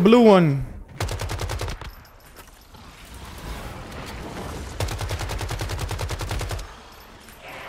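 A rifle fires rapid bursts.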